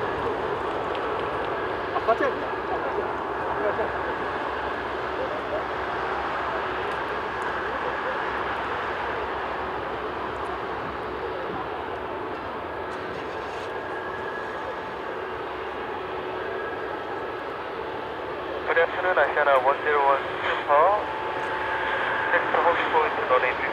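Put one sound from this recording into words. A large jet airliner's engines roar steadily as it taxis past.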